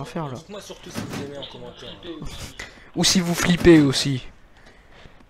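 Young men talk with animation close to a microphone.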